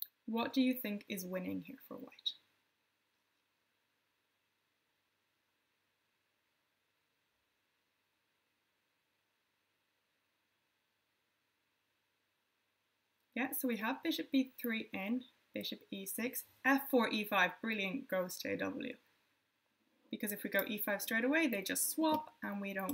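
A young woman speaks calmly and clearly into a microphone, close by.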